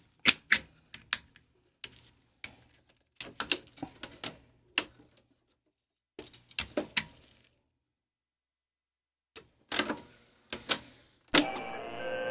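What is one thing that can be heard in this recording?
Switches and parts of a tape recorder click and clack as it is handled.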